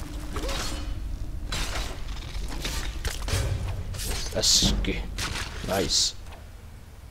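Weapon blows thud against a giant spider.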